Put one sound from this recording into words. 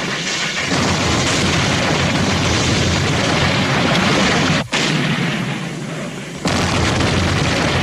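An explosion roars and rumbles.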